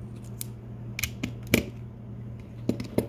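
A metal tool scrapes and clicks against a circuit board.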